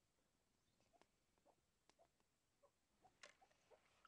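Water drips from fingers into a bowl.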